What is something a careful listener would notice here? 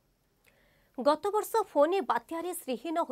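A young woman reads out news calmly and clearly into a microphone.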